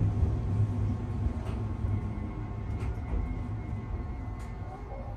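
A train rumbles low and steadily along the tracks.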